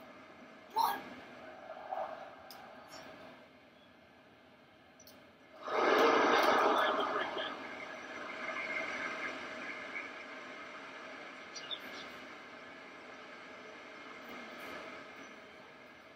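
A football video game's stadium crowd roars through a TV speaker, swelling loudly for a moment.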